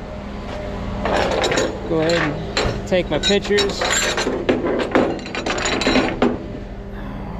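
Metal hooks and chains clank against a steel deck.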